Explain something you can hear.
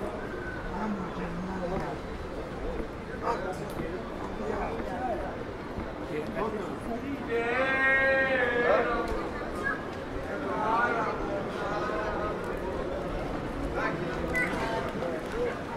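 Voices of passers-by chatter in a busy pedestrian street outdoors.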